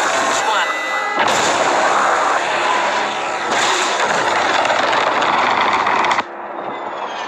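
A rocket engine roars loudly.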